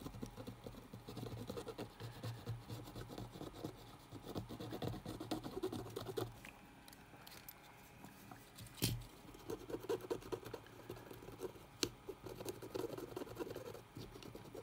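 A cotton swab scrubs against a circuit board with a soft scratching.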